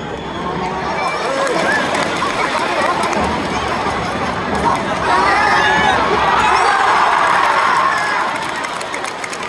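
A crowd in the stands cheers and shouts loudly as the attack nears the goal.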